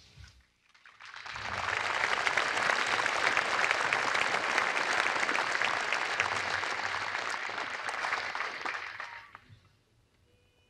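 A large crowd applauds steadily, then the clapping fades.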